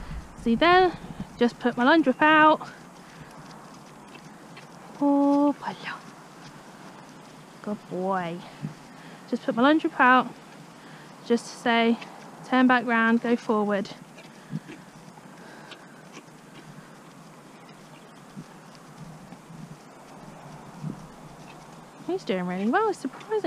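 A horse walks with soft hoof thuds on grass.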